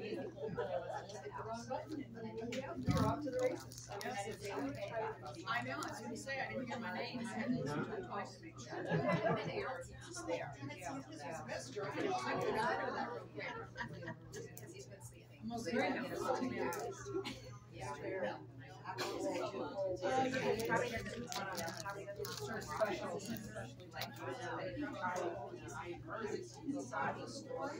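A dog's claws click on a hard floor as it walks around.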